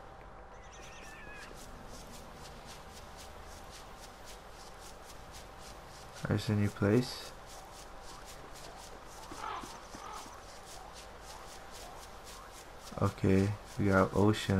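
Footsteps patter quickly on dry ground.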